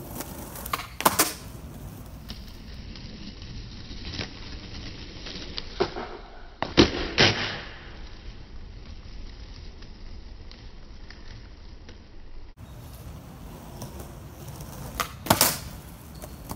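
A skateboard clacks sharply on concrete as a trick is landed.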